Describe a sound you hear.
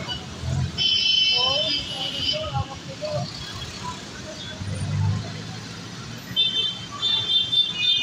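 Motorcycle engines buzz past close by.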